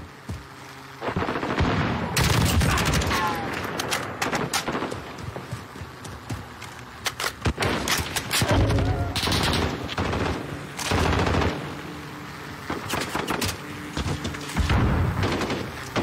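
Rifle shots crack out loudly.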